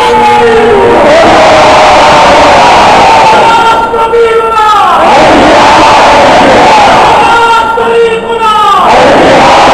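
A man shouts with fervour, echoing in a large hall.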